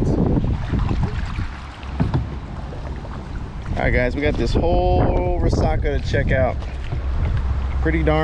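A kayak paddle splashes through water.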